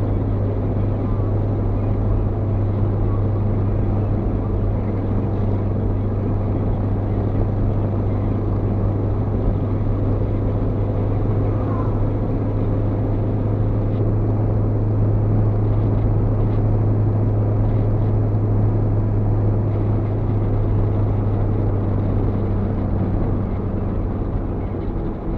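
A car engine drones steadily inside the cabin.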